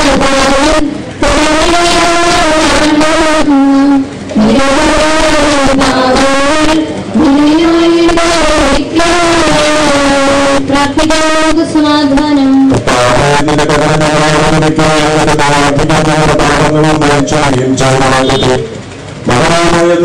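A crowd of men and boys sings together slowly.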